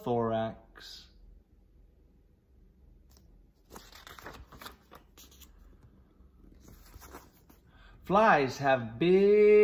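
A man reads aloud calmly, close by.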